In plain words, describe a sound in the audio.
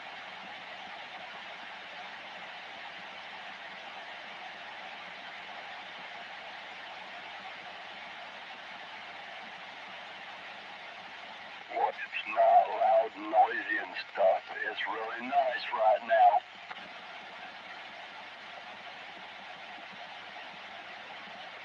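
Static hisses steadily from a radio loudspeaker.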